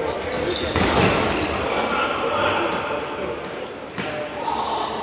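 A futsal ball is kicked in an echoing sports hall.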